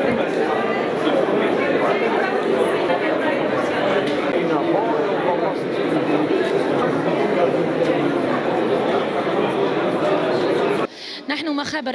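Many people talk at once in a busy, echoing hall.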